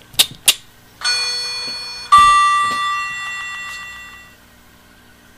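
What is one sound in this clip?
An elevator chime rings out and slowly fades.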